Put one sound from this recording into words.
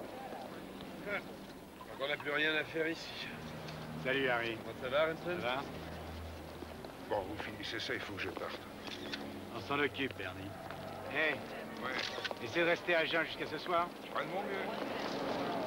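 Several men talk with each other outdoors, close by.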